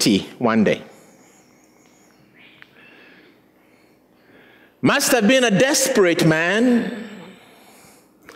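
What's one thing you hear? A man speaks with animation through a microphone in a reverberant hall.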